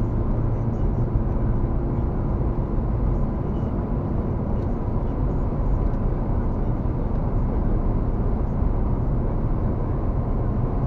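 A car's engine hums steadily, heard from inside the cabin.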